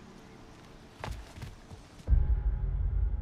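A heavy wooden chest lid slams shut with a thud.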